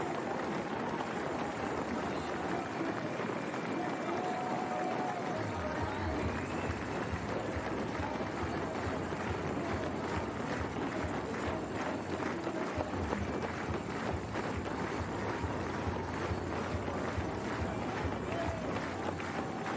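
A crowd cheers and claps steadily outdoors.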